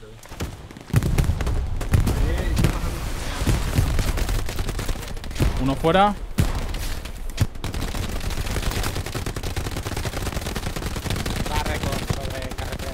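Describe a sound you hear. A submachine gun fires bursts.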